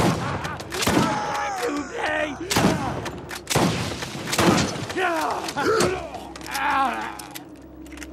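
Shotgun blasts boom in quick bursts.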